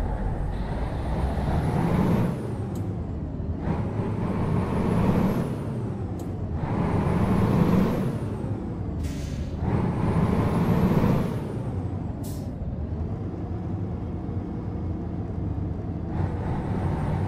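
A truck engine revs up and drops repeatedly as it shifts through gears.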